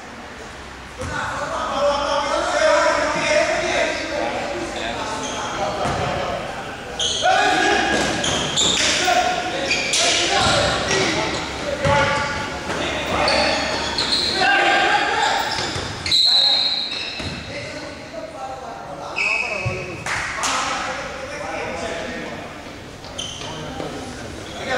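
Spectators chatter loudly nearby in a large echoing hall.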